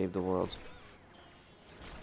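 A laser blaster fires.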